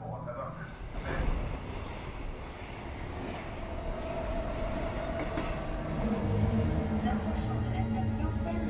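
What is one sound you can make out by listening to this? A train rumbles along an elevated track.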